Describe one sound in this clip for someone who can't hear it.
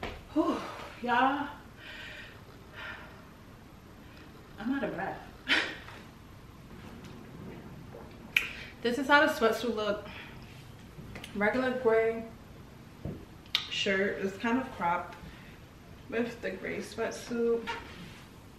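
A young woman talks casually, close by, with pauses.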